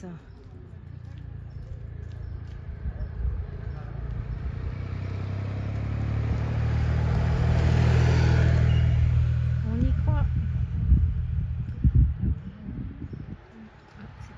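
A motorcycle engine approaches, roars past close by and fades away.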